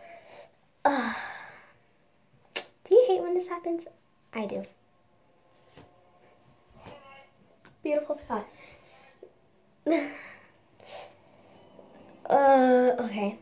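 A young girl talks close by, with animation.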